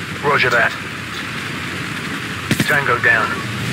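A helicopter hovers overhead with a low rumble.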